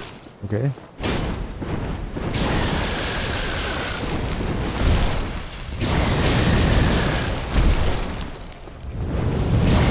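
Fiery magic blasts burst with a loud roar.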